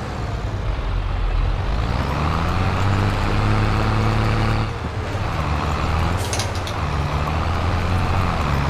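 A tractor engine rumbles steadily, its pitch rising and falling.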